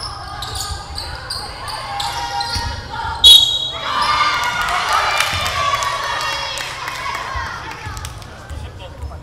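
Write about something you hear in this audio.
A crowd of players and spectators shouts and cheers in an echoing gym.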